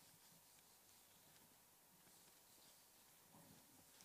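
A cloth rubs across a whiteboard.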